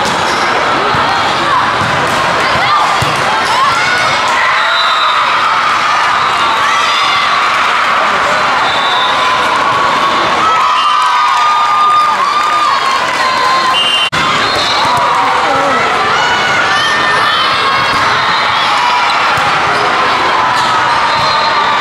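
A crowd of players and spectators chatters and calls out in a large echoing hall.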